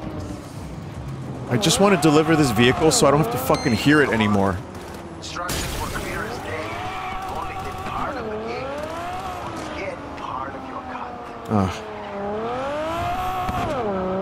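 A car engine roars, revving up and down as the car speeds along.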